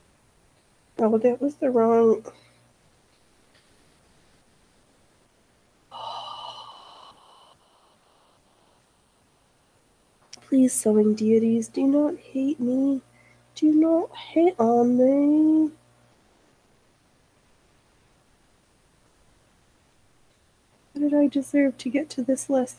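A young woman speaks close to a microphone, with animation.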